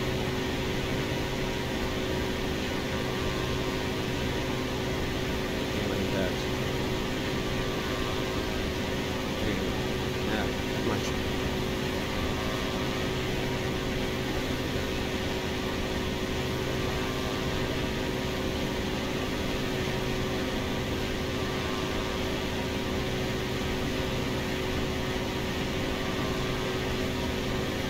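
A small propeller plane's engine drones steadily inside the cockpit.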